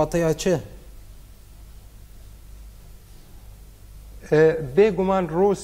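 A man speaks calmly into a microphone, in short bursts with a pause between.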